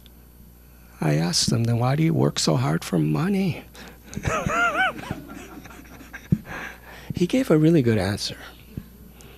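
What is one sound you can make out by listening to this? An older man speaks with animation into a microphone, close by.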